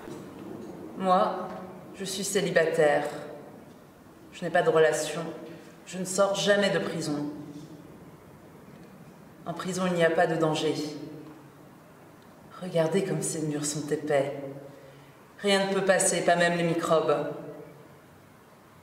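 A young woman speaks slowly and thoughtfully, close by, with pauses.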